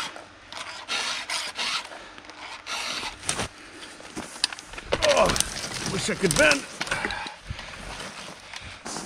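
A chainsaw chain clicks and rattles as it is handled.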